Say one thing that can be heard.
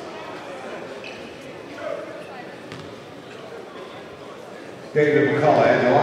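Spectators chatter quietly in a large echoing gym.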